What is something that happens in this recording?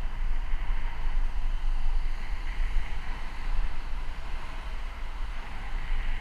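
Tyres roll steadily over smooth road.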